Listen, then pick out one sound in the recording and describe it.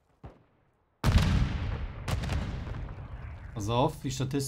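An explosion booms and slowly rumbles away.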